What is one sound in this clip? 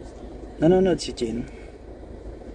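A young man speaks briefly and closely.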